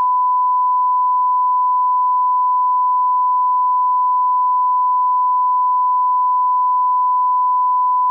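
A steady, high test tone sounds without a break.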